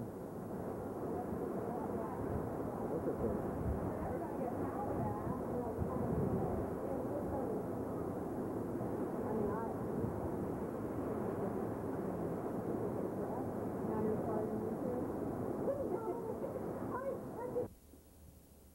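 Strong wind roars through trees outdoors.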